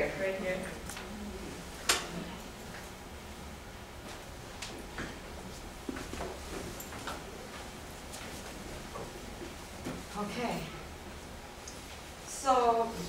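A woman talks in a room, some distance away.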